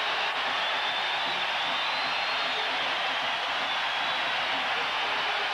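A huge stadium crowd roars and cheers loudly and steadily.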